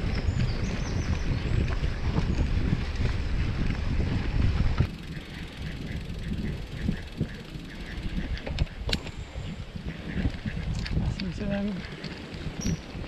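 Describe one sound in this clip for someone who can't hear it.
Bicycle tyres crunch and roll over a dirt path.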